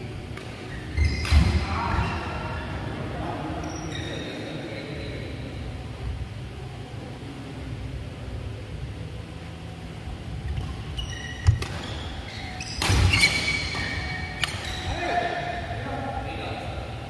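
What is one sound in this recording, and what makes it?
Men call out to each other in a large echoing hall.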